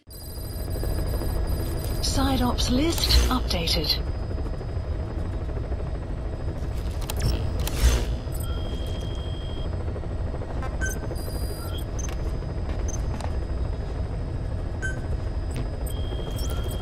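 A helicopter engine drones with a low, steady rumble.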